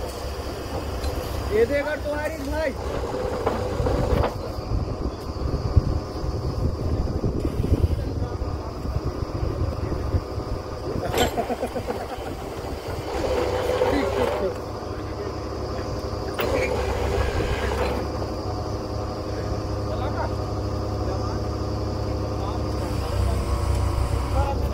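A drilling rig's engine rumbles steadily outdoors.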